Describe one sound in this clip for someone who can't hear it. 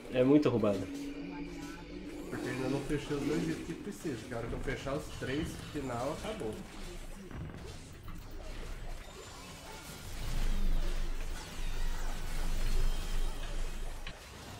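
Game spells and hits crackle and boom during a fight.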